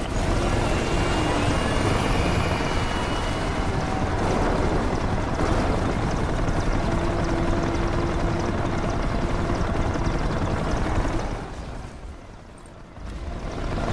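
Tyres rush over the road.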